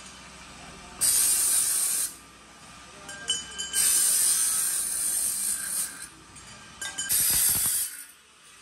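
A power saw screeches loudly as it cuts through metal in short bursts.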